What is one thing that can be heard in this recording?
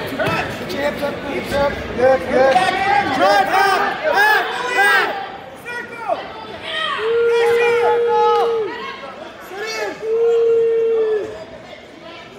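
A crowd of spectators at a wrestling match shouts and cheers in an echoing gym.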